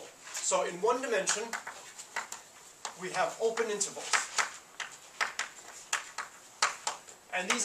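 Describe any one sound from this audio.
A man speaks calmly as he lectures.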